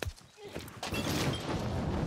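A fire roars and crackles close by.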